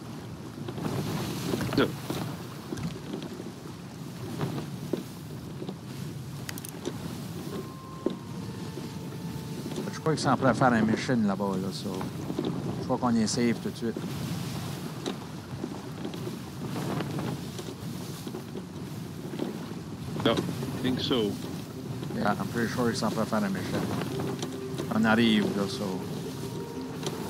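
Rough waves wash and crash against a wooden ship.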